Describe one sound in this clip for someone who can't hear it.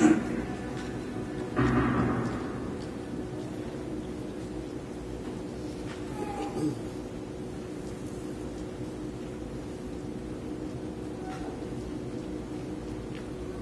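Feet shuffle and thud on a wooden stage floor.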